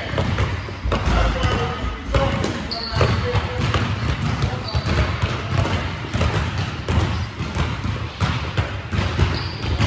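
Basketballs bounce on a hardwood court in a large echoing gym.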